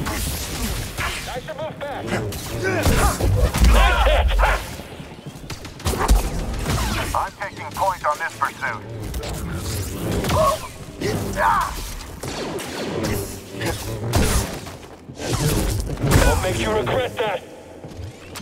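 Blades clash with sharp hits in quick bursts.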